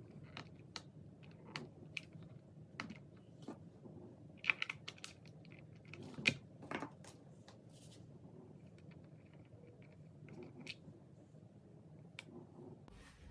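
Small metal parts click and tap against each other on a hard surface.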